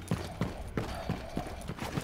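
Gunshots crack from a rifle.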